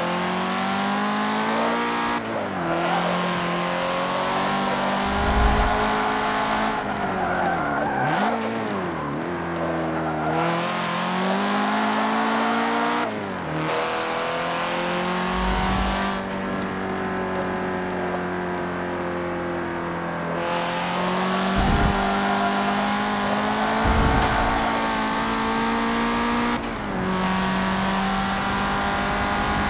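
A car engine revs high and roars, its pitch rising and dropping with gear shifts.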